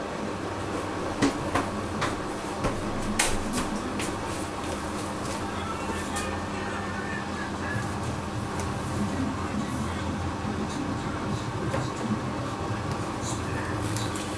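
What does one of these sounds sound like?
Water sloshes inside a washing machine drum.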